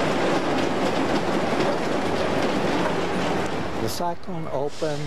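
A roller coaster train rumbles and rattles along its track.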